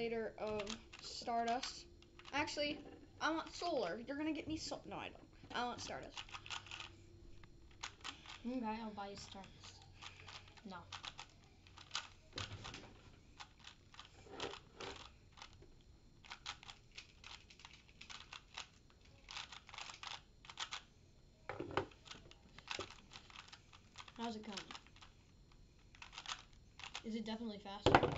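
A plastic puzzle cube clicks and rattles quickly as it is turned.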